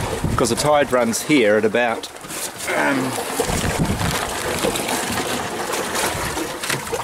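Water splashes against the hull of a small boat.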